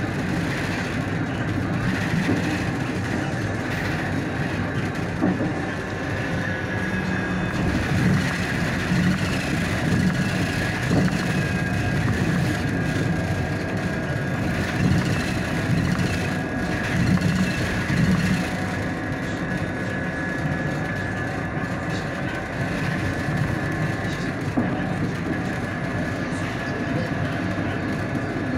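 A car's engine hums steadily from inside as it drives along a road.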